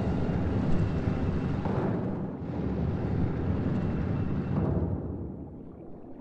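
A low rumbling grind sounds as a sealed stone door opens.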